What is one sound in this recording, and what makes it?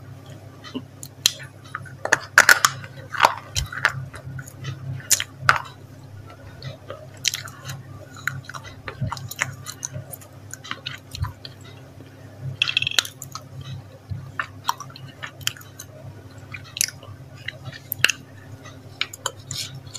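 A woman bites into soft food close to a microphone.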